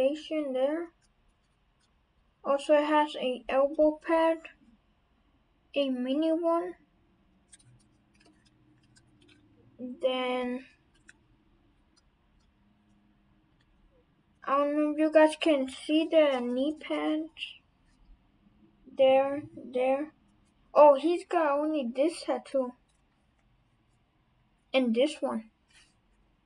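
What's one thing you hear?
A young person talks calmly and close by, in short bursts with pauses.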